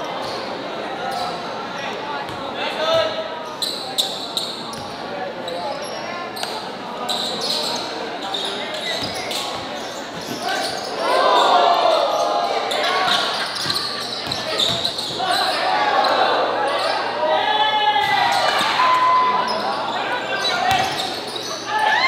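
Basketball shoes squeak sharply on a court.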